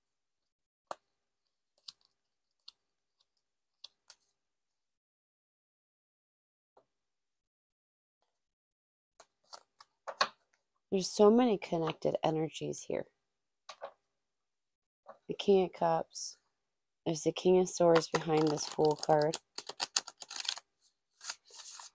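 Cards shuffle and tap against each other.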